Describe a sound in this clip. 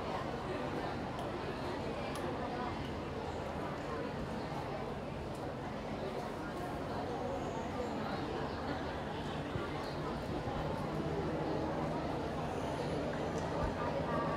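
Men talk among themselves outdoors, heard from a distance.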